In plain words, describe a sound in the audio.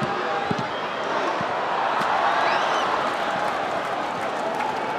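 A stadium crowd swells into a loud cheer, then settles.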